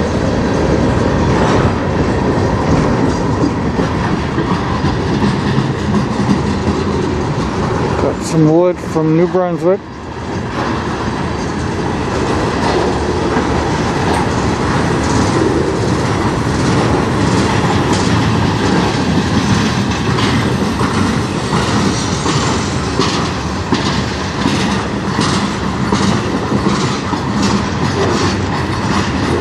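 Train wheels clack over rail joints again and again.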